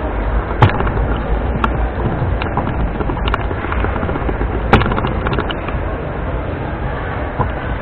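Wheelchair wheels roll across a wooden floor.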